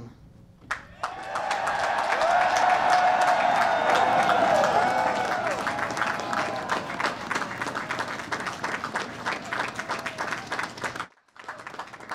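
A crowd applauds and cheers outdoors.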